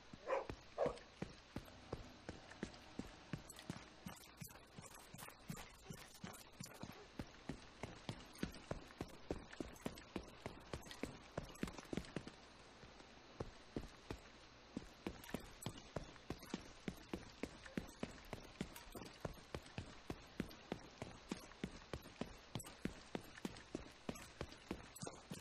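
Footsteps crunch quickly and steadily on hard ground and grass.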